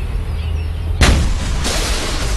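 A car explodes with a loud blast.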